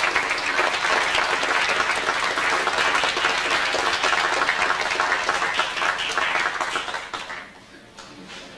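An audience applauds loudly in a large hall, then the clapping fades.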